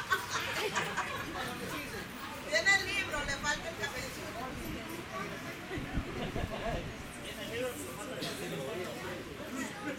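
Several people chatter quietly in the background.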